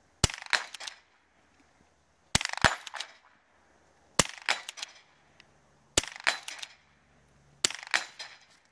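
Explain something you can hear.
A small-bore rifle fires single sharp shots, each echoing outdoors.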